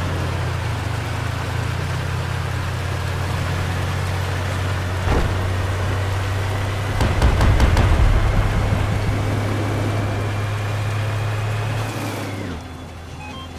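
A heavy vehicle engine rumbles steadily as it drives.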